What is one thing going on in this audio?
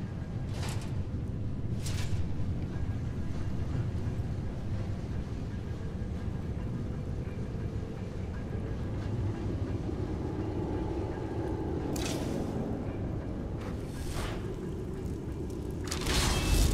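A low, steady rumble fills a large echoing hall.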